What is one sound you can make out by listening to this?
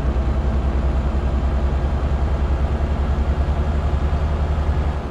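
A truck's diesel engine rumbles steadily with a low, throbbing pulse.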